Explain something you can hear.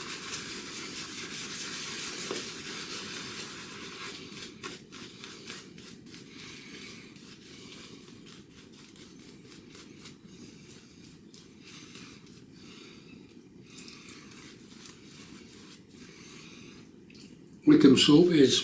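A razor scrapes through stubble in short strokes.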